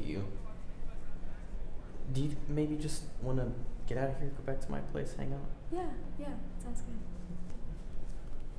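A young woman talks softly nearby.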